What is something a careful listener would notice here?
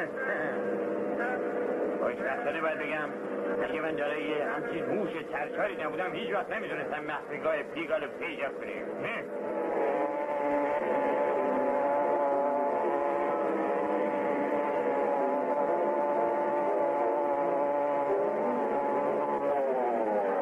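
A small motorbike engine putters along.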